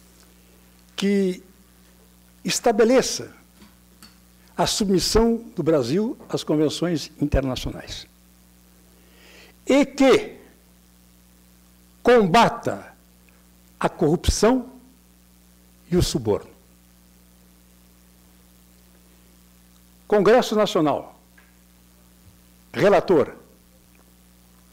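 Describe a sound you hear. A middle-aged man speaks through a microphone in bursts, pausing often.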